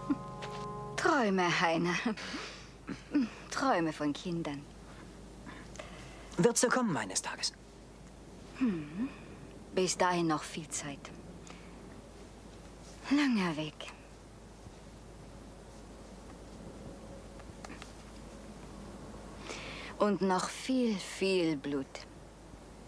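A woman speaks calmly and quietly close by.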